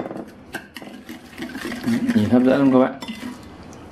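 A metal spoon clinks against a bowl while stirring.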